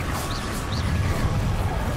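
A fiery beam of magic roars.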